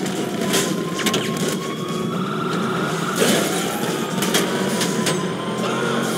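A car engine revs as the car drives off.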